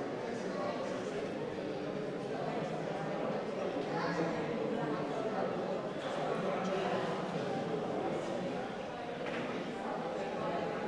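A crowd of men and women murmur and talk quietly in an echoing hall.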